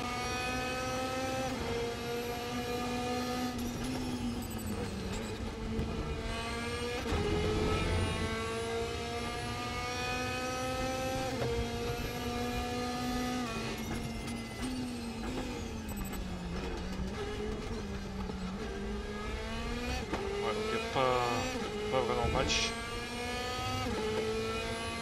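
A racing car engine roars, rising in pitch and dropping sharply with each gear change.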